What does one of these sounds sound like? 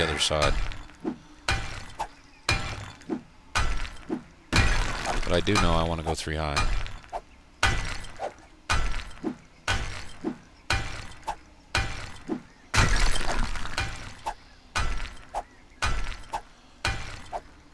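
A pickaxe strikes rock again and again at a steady pace.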